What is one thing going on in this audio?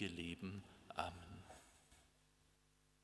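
A man speaks calmly into a microphone in an echoing room.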